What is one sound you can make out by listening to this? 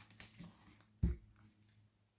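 A card taps down onto a table.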